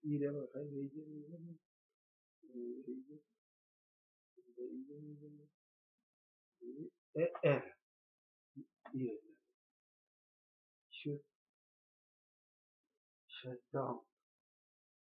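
An elderly man speaks slowly and calmly, close by, in short phrases with pauses.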